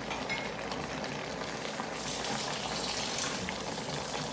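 A wooden spatula scrapes and stirs food in a pan.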